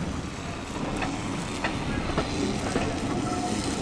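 Train wheels clack sharply over rail joints.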